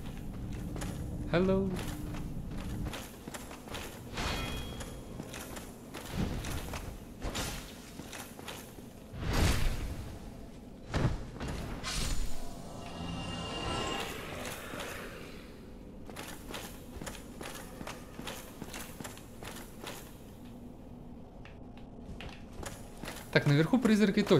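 Armoured footsteps clank on stone.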